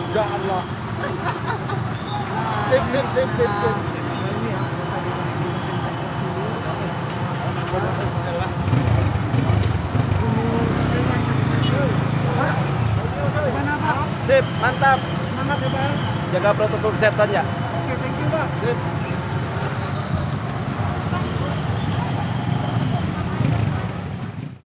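A busy crowd murmurs outdoors.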